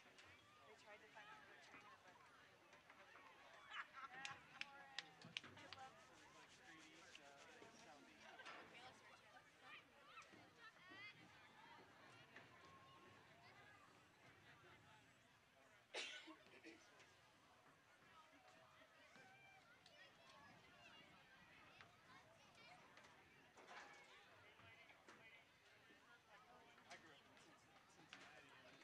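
Young women and adults chatter and call out outdoors.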